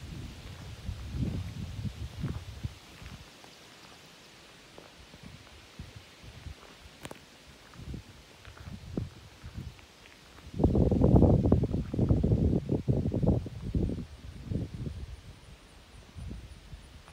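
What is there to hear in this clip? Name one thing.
Wind blows in gusts outdoors.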